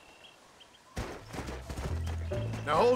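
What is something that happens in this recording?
A horse's hooves thud on snowy ground.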